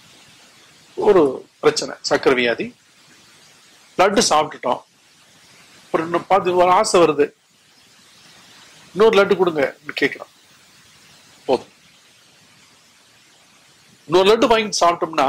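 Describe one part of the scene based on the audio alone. An elderly man speaks slowly and solemnly into a microphone, in bursts with pauses, in a slightly echoing room.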